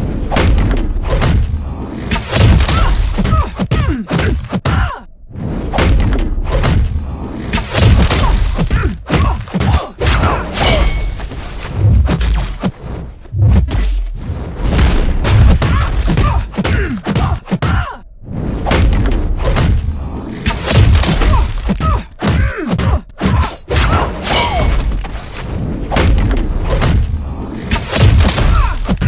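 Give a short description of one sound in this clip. Punches and kicks land with sharp thuds and smacks in a video game fight.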